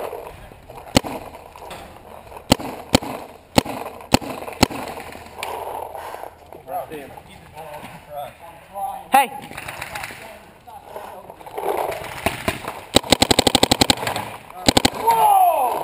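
A paintball marker fires sharp pops close by, sometimes in quick bursts.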